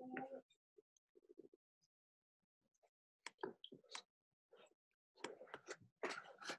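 Paper rustles and crinkles under busy hands.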